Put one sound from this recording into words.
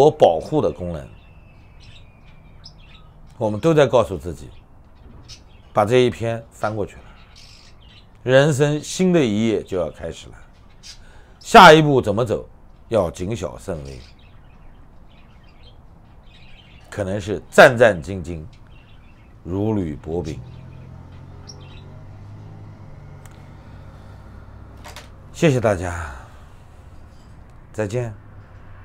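A middle-aged man speaks calmly and closely into a microphone, with pauses between phrases.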